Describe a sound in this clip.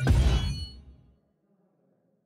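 A bright game chime rings out and fades.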